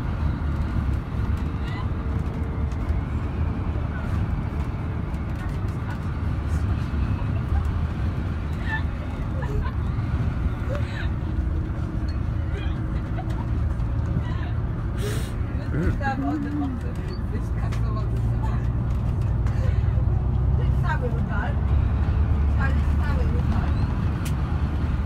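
The inside of a bus rattles and knocks as it drives.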